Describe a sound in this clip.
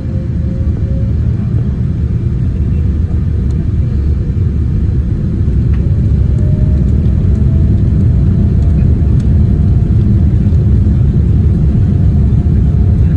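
Jet engines roar steadily and slowly grow louder.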